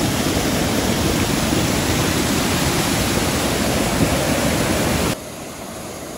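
A waterfall roars heavily close by.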